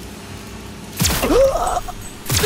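A pistol fires a single shot.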